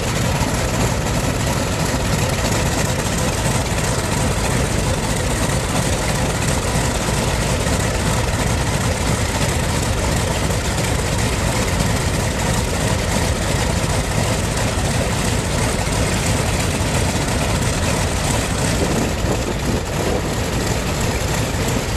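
Propeller aircraft engines roar loudly and steadily close by, outdoors.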